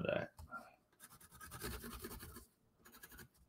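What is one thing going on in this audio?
A pencil scratches across cardboard.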